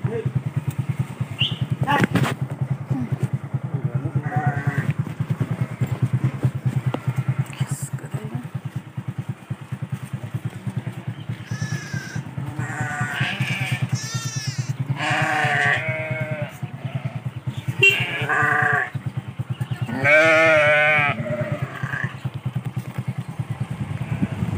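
A motorcycle engine putters steadily close by.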